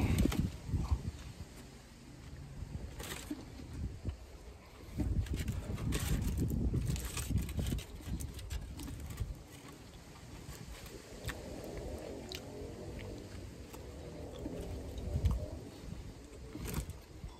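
A man chews food noisily up close.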